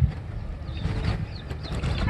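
Water splashes as a man wades in.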